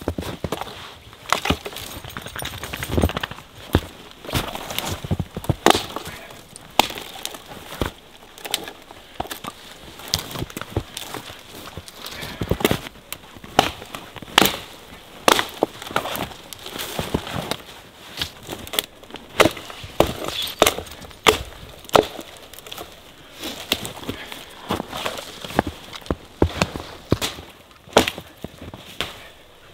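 An axe chops into a tree trunk with repeated sharp blows.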